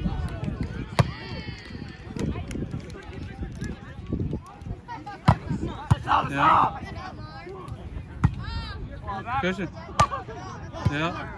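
A volleyball is struck with dull thumps.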